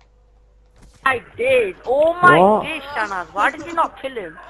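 A man shouts out a long, drawn-out exclamation.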